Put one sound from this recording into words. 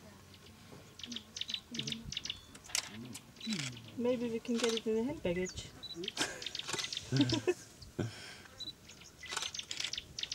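A lion licks another lion's fur with wet rasping strokes.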